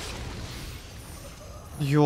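A sword strikes with a sharp metallic clang.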